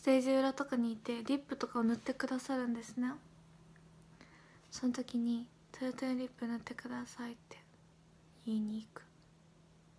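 A young woman speaks calmly and close into a microphone, in short bursts with pauses.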